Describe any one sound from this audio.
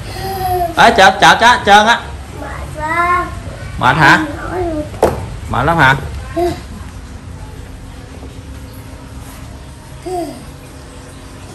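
A young child babbles and squeals in a high voice close by.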